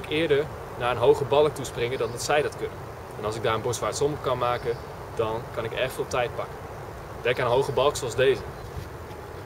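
A young man talks calmly and clearly, close by.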